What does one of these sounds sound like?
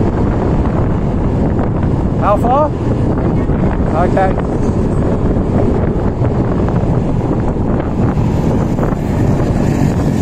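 A motor scooter engine hums steadily while riding.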